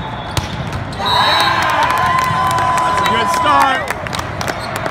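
Young men shout and cheer loudly together.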